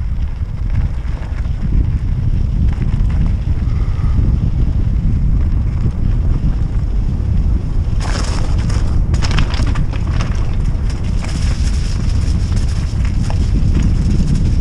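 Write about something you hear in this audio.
Wind rumbles and buffets loudly throughout, outdoors.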